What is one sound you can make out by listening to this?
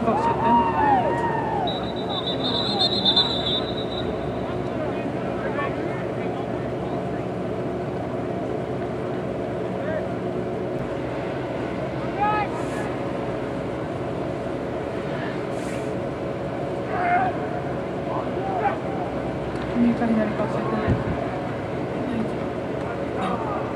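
Young players shout and call out far off across an open field.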